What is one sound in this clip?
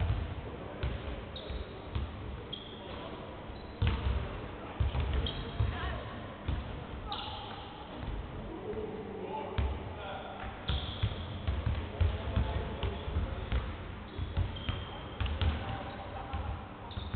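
A basketball bounces with dull thuds on a wooden floor.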